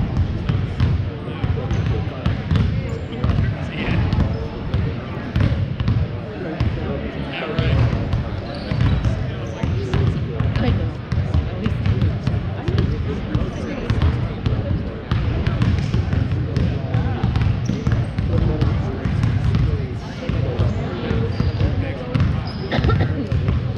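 People chatter faintly in a large echoing hall.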